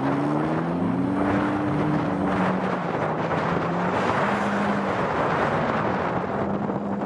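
Tyres spin and spray dirt and loose grass.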